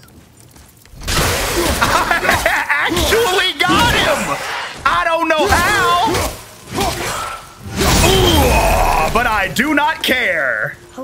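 Axe blows strike and crunch in combat.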